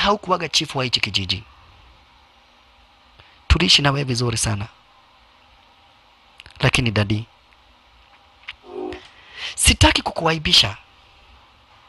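A man speaks quietly and seriously, close by.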